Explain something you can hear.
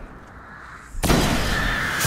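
A sniper rifle fires a heavy shot.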